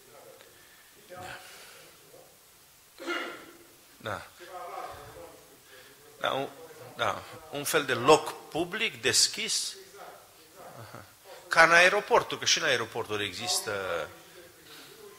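A middle-aged man speaks emphatically into a microphone, with pauses.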